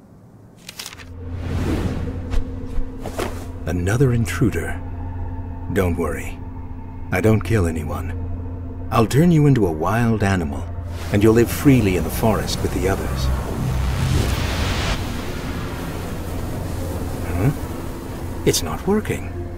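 Low, dark music drones steadily.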